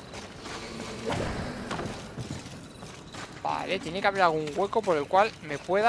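Footsteps thud on the ground as a figure runs.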